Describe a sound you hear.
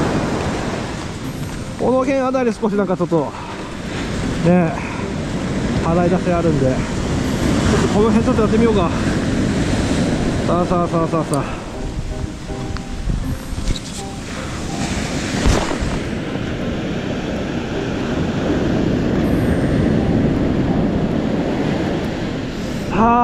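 Waves wash steadily onto the shore.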